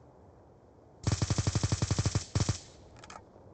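An automatic rifle fires a rapid burst of shots up close.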